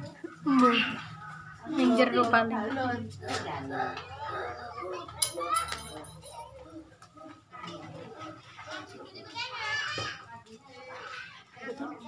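A woman chats casually nearby.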